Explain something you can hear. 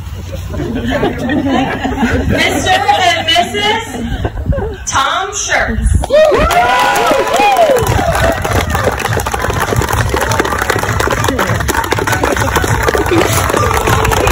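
Guests clap their hands.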